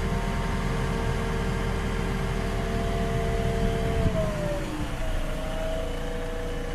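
Hydraulics whine, and the whine dips in pitch partway through.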